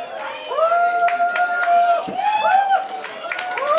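Dancers' feet step and shuffle on a stage floor.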